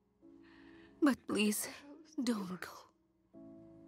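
A young woman moans softly in pain.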